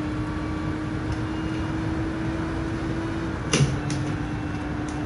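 A racing car engine drones at a steady high pitch.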